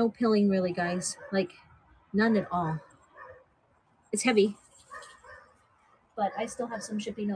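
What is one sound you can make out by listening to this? Fabric rustles as a blanket is handled.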